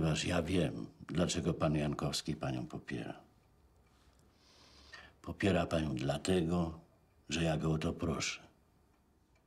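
An elderly man speaks quietly and slowly, close by.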